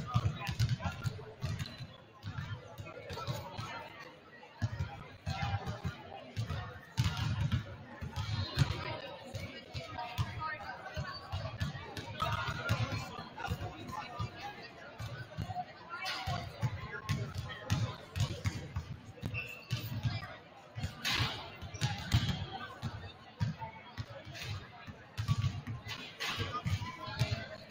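A crowd murmurs and cheers from the stands.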